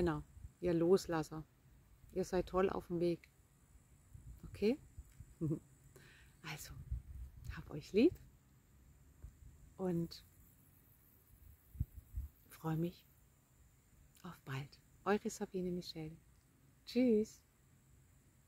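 A woman speaks calmly and warmly, close to the microphone.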